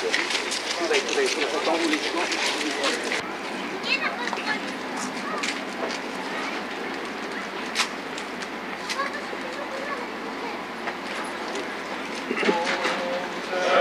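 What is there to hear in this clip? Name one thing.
A crowd of men murmurs and talks quietly outdoors.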